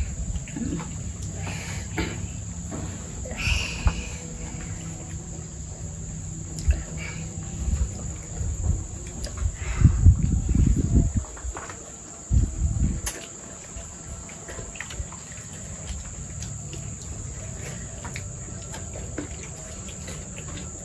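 Dishes and cutlery clink softly.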